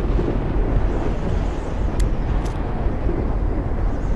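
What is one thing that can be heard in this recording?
A lighter flicks open and sparks.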